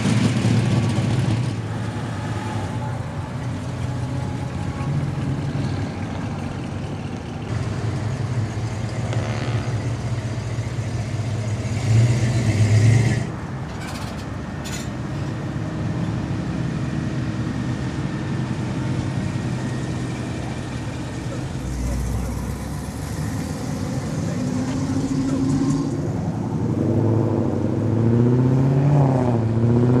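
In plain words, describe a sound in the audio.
Car engines rumble as classic cars drive slowly past, outdoors.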